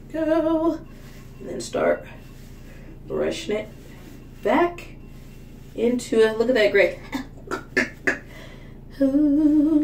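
A brush strokes through hair.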